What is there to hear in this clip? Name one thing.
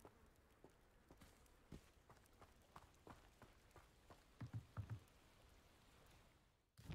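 Footsteps run quickly over dirt and then thud on wooden planks.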